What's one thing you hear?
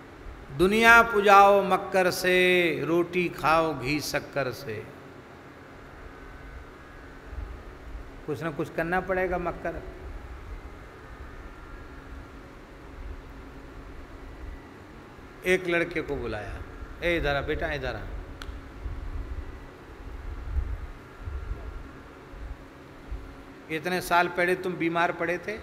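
A man speaks calmly and slowly into a microphone, in bursts with long pauses.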